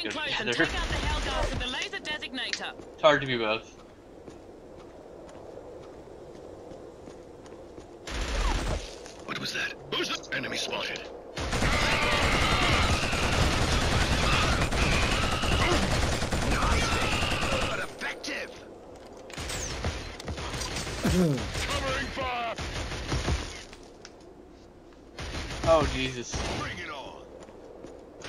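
A young man talks with animation into a microphone nearby.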